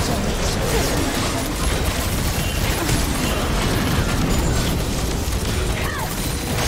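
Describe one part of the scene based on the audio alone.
Game spells crackle and blast in a busy fight.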